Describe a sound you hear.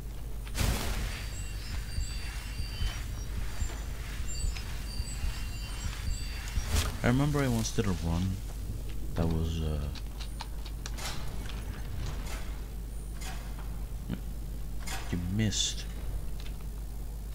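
A magic spell hums with a faint, steady shimmer.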